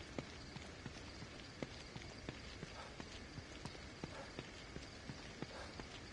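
Footsteps crunch steadily on a gravel path.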